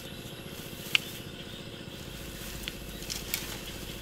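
Tall grass rustles as someone pushes through it.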